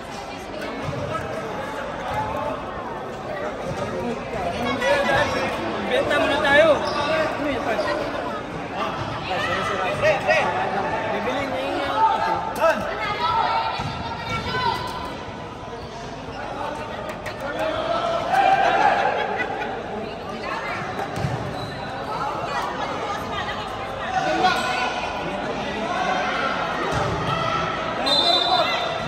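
A crowd of men and women chatters loudly in a large echoing hall.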